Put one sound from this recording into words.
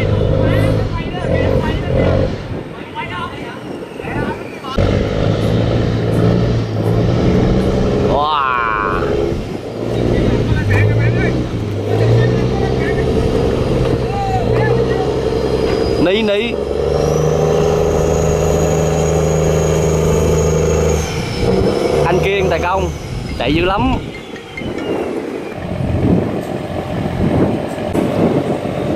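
A boat's diesel engine chugs steadily on the water.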